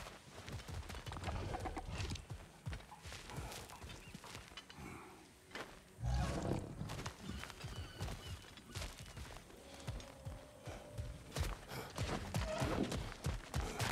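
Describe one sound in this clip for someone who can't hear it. Heavy footsteps crunch on stone and gravel.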